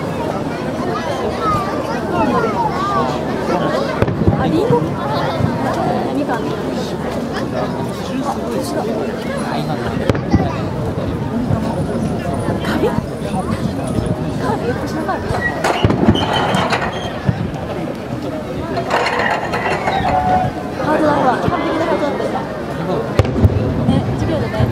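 Fireworks burst with loud booms and echoing bangs.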